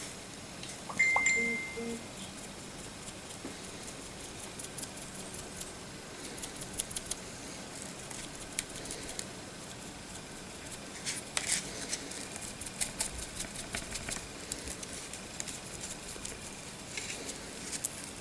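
Fingers rub and tap against a small plastic model, making faint clicks and scrapes.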